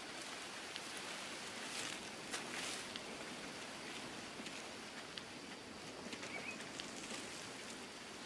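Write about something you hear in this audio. Footsteps rustle through dry leaves and undergrowth.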